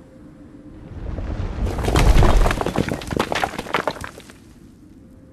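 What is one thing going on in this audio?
Rocks tumble and crash down loudly.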